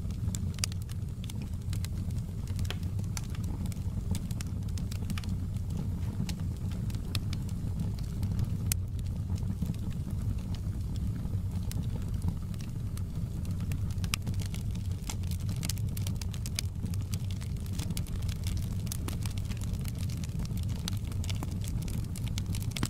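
Logs crackle and pop in a burning fire.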